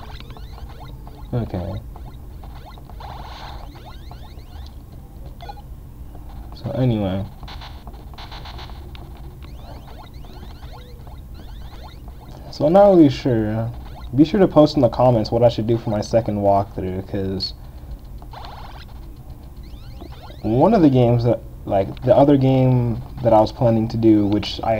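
An old video game plays short electronic bleeps and buzzes.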